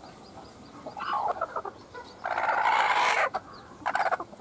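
A hen squawks loudly as it is picked up.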